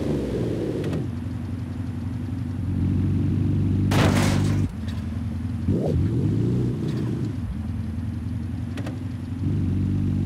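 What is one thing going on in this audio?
A car engine idles and rumbles steadily.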